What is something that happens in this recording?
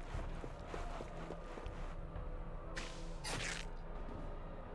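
Blades swoosh and clash in a fight.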